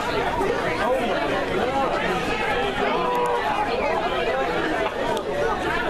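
A crowd of men and women chatter loudly all around, close by.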